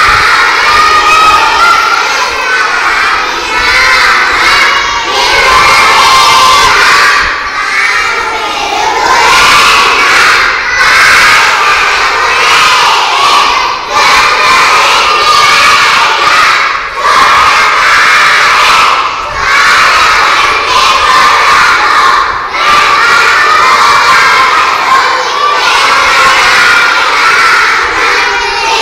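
A group of young children chant together loudly in unison, close by.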